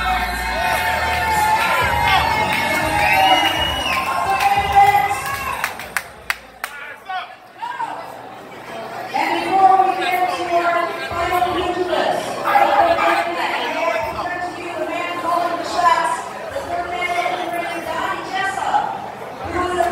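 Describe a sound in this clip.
Several men talk and shout excitedly nearby.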